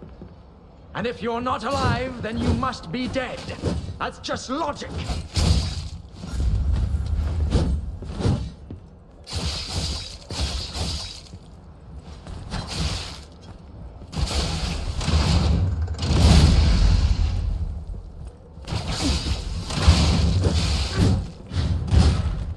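Blades clash and strike with heavy thuds.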